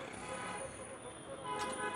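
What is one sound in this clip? A serving spoon clinks against a metal pot.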